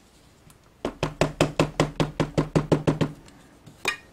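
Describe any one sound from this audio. A stamp is tapped quickly and repeatedly onto an ink pad.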